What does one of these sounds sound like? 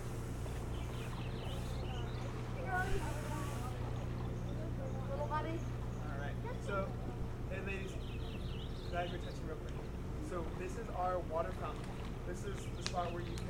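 An osprey calls with short, high chirps nearby.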